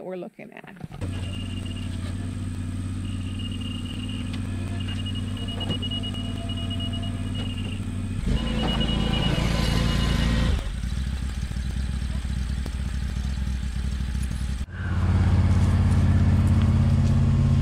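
A ride-on mower engine hums steadily outdoors.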